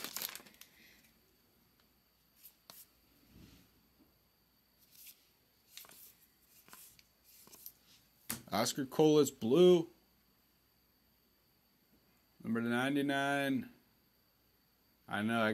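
Cards slide and tap against each other as hands flip through them.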